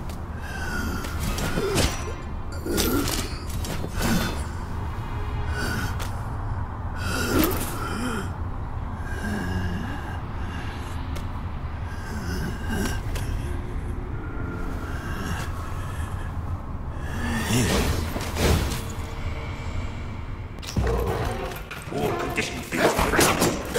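Heavy blows thud and clash.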